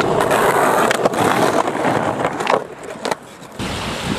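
A skateboard clacks as it lands on concrete.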